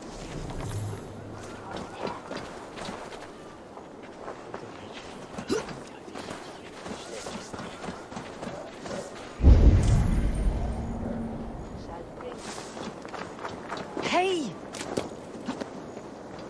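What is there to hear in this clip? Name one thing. Footsteps crunch on dirt and dry grass.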